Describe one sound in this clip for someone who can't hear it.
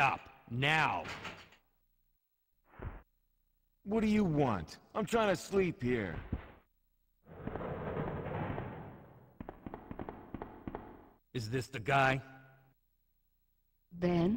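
A man speaks calmly in a low voice close by.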